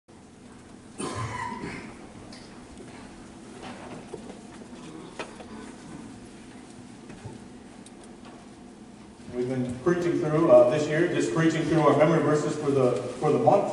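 A man speaks calmly and with emphasis into a microphone in an echoing room.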